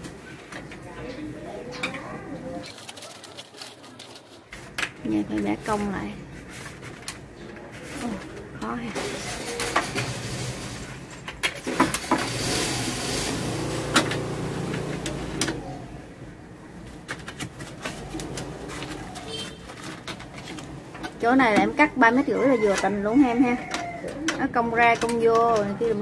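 Metal pipe fittings clink and tap as hands work on them.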